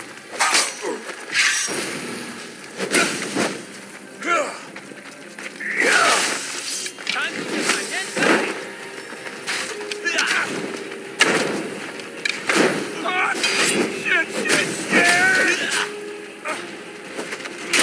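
Swords clash and strike in quick blows.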